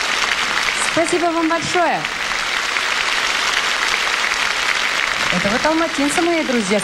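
A woman speaks through a microphone with animation.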